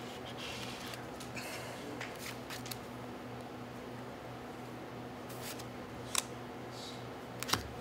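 Cards are shuffled in a player's hands.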